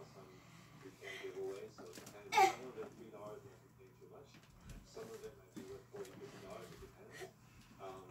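A plastic shelf knocks and creaks under a climbing child.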